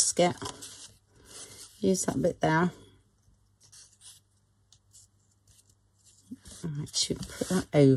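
Paper rustles and crinkles as it is handled.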